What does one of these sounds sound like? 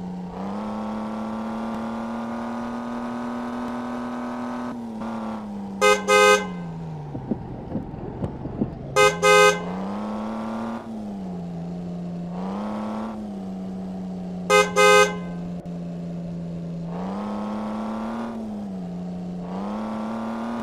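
A car engine hums steadily, its pitch rising and falling as it changes speed.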